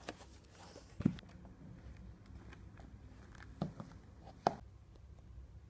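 Sneakers thud softly on a wooden floor.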